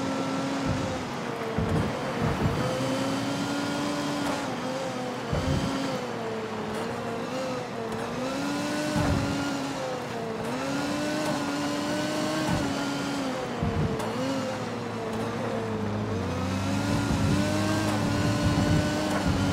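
A sports car engine roars steadily, its pitch rising and dipping with the throttle.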